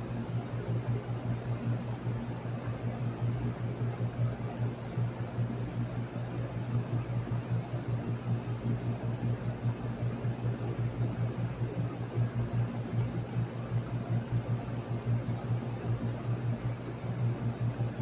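An outdoor air conditioner fan hums and whirs steadily, with a low, pulsing drone.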